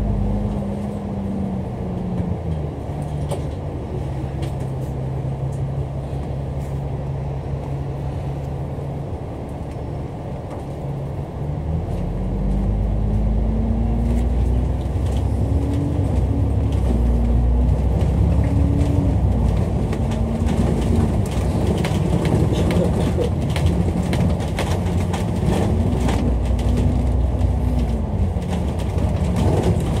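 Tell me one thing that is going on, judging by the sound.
A bus engine hums steadily and revs up as the bus pulls away.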